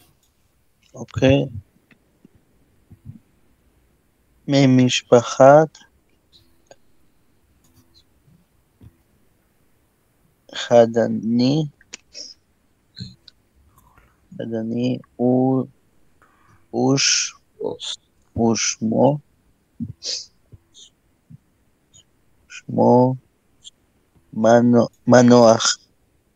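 A man speaks slowly in short phrases over an online call.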